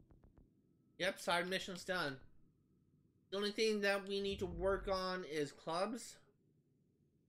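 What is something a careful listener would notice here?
A young man talks casually into a nearby microphone.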